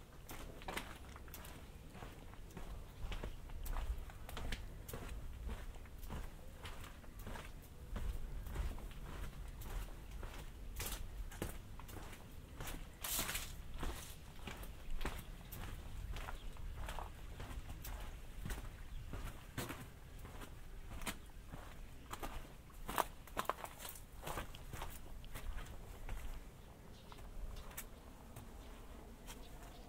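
Footsteps crunch steadily on stone paving outdoors.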